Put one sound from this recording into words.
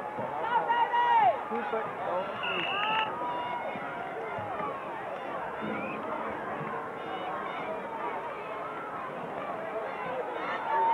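Young men shout excitedly nearby.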